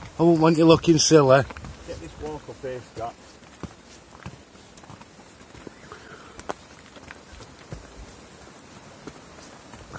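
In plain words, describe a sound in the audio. Footsteps climb steps outdoors.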